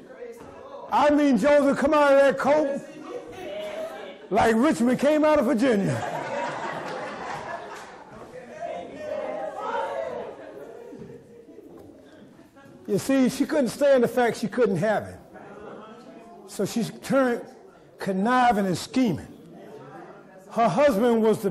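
A man preaches with feeling through a microphone in a large echoing hall.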